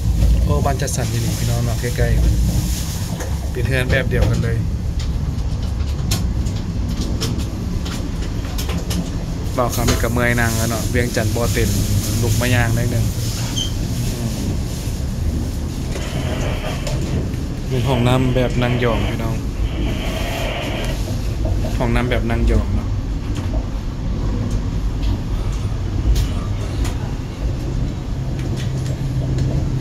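A train rumbles steadily as it runs.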